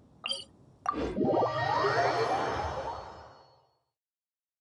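A shimmering magical whoosh swells and then fades away.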